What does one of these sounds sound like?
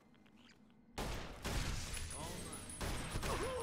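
Gunshots blast loudly in rapid succession.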